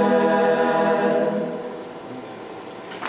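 A choir sings in a large hall.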